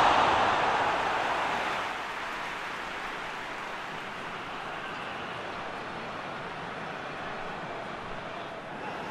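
A large stadium crowd cheers and roars loudly, then settles into a steady murmur.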